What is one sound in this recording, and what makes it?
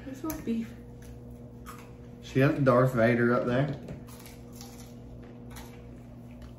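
Crisp chips crunch as people chew.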